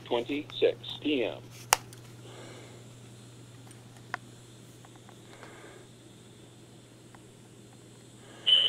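A mobile phone is handled and bumped close by.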